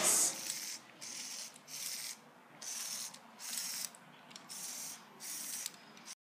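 A small electric motor whirs in short bursts.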